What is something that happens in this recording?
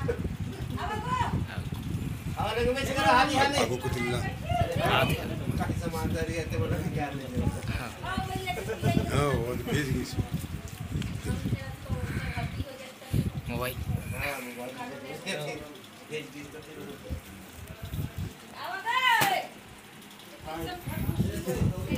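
A man talks loudly and with agitation nearby.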